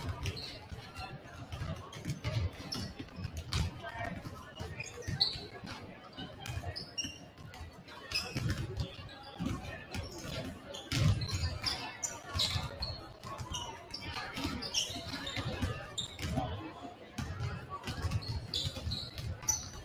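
A crowd murmurs and chatters in the stands.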